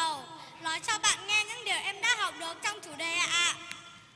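A young girl speaks calmly into a microphone.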